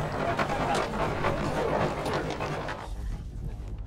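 A busy crowd murmurs outdoors.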